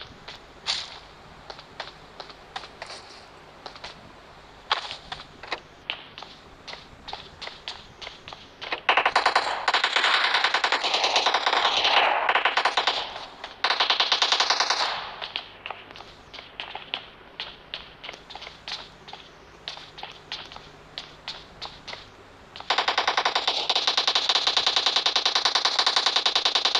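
Footsteps tap quickly on hard floors.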